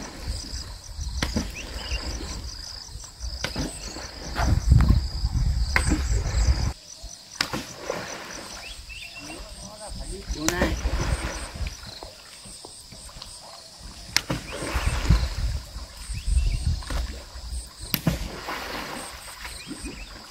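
A pole splashes and slaps on the water.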